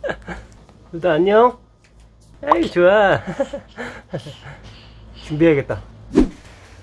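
A baby coos and babbles softly close by.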